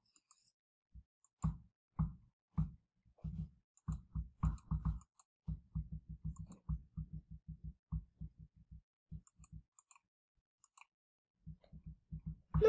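Short electronic game tones play in quick bursts.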